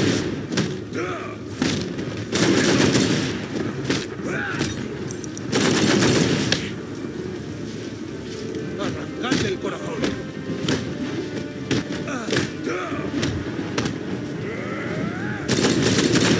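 Bodies thud onto a wooden floor.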